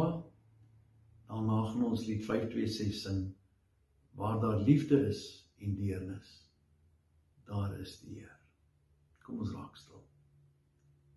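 A middle-aged man speaks calmly and closely into a microphone, with pauses.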